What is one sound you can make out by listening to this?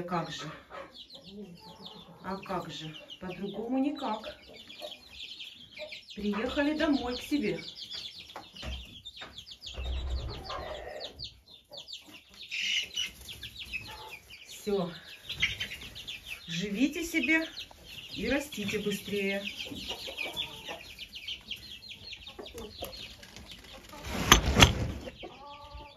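Many chicks peep and cheep constantly nearby.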